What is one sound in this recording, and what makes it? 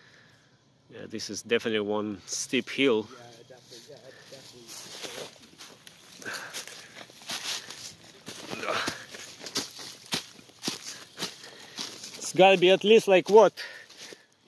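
Footsteps crunch through dry leaves and gravel.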